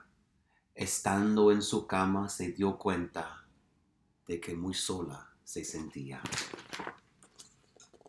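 A man reads aloud expressively, close by.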